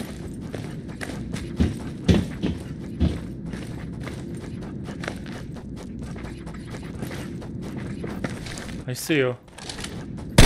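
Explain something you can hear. Footsteps clank on a metal floor.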